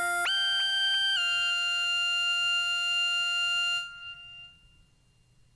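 Electronic synth chords play loudly through loudspeakers.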